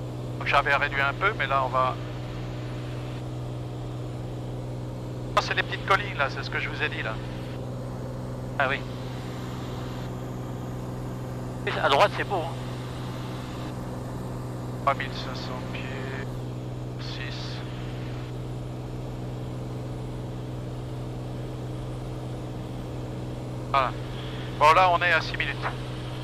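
A propeller engine drones steadily inside a small aircraft cabin.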